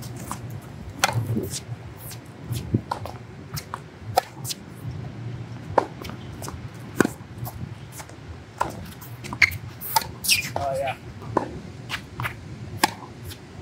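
A tennis racquet strikes a tennis ball with sharp pops.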